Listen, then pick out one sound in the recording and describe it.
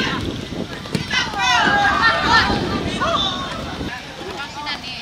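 A group of young men cheer loudly in celebration.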